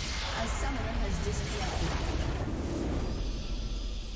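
A large explosion booms and rumbles away.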